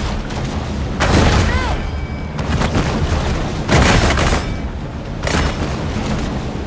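Water splashes loudly in bursts.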